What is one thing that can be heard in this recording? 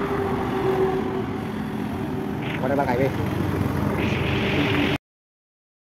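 Traffic rumbles past on a road.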